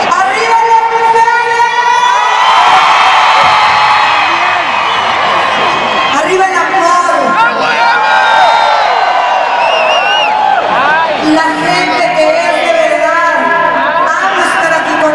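A large crowd sings along and cheers loudly close by.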